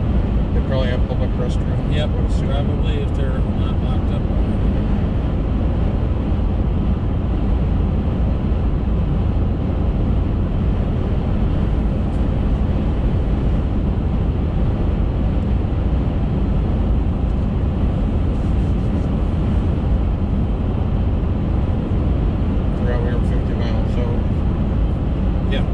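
A car engine hums steadily with loud road noise from inside the car.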